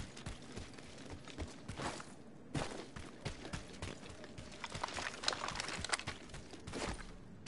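Footsteps thud quickly over dirt in a video game.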